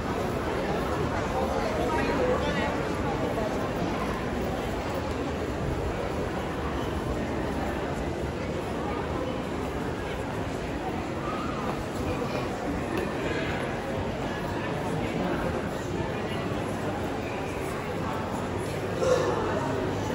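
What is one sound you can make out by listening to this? A crowd of people chatters in an echoing indoor hall.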